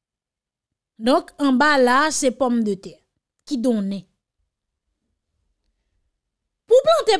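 A young woman speaks with animation, close to a microphone.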